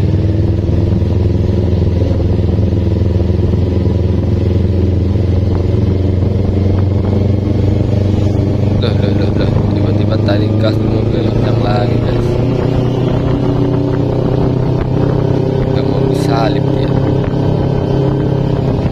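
A motorcycle engine hums steadily up close as it rides.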